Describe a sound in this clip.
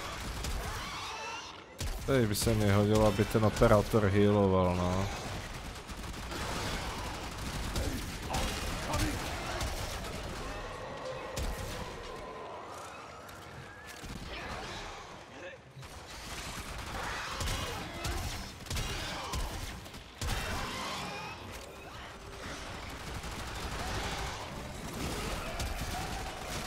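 Guns fire in rapid bursts with sharp energy blasts.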